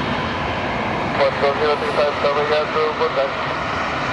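Tyres screech briefly as an airliner touches down.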